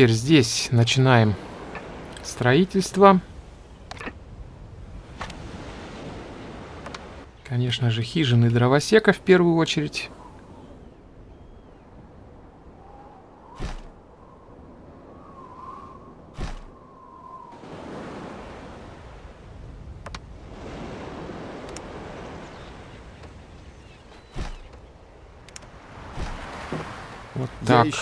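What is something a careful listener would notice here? Waves wash softly against a shore.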